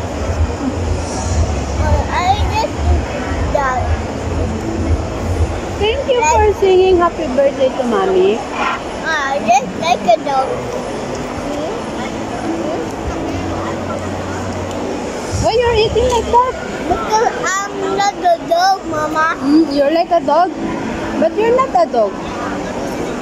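A woman talks nearby in a calm voice.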